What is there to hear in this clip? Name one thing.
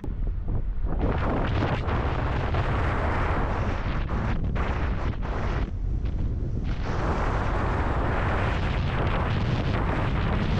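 Wind blows hard across the microphone outdoors.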